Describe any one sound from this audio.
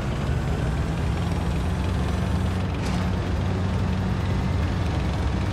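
Tank tracks grind over the ground.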